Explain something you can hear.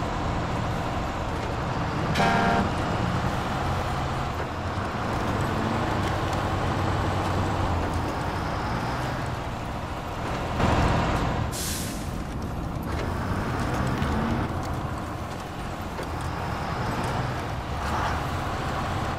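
A heavy truck engine rumbles and labours steadily.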